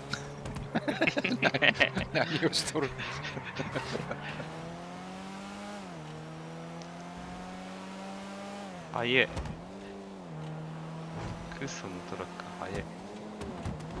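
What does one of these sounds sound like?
A car engine roars and revs as it speeds up, shifting gears.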